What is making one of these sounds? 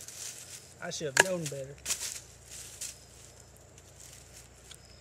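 Dry leaves rustle and crackle under a man's hands.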